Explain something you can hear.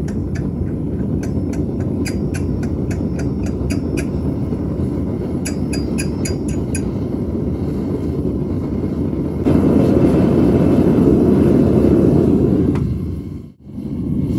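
A gas burner roars steadily and grows louder.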